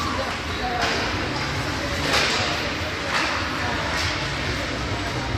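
Skates scrape across the ice in an echoing rink.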